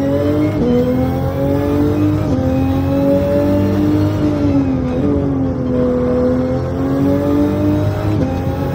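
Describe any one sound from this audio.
A racing car engine roars steadily, its pitch dipping briefly at each gear shift.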